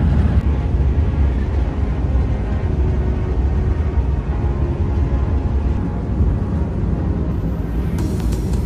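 A train hums and rumbles steadily at speed.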